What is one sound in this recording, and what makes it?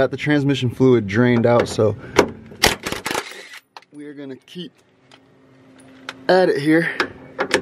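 A cordless impact driver rattles in short bursts.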